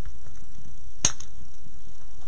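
Pliers snip with a sharp click.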